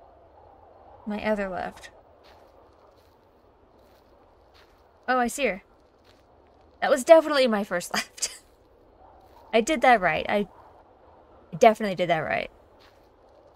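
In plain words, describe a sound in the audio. A young woman talks close to a microphone in short bursts.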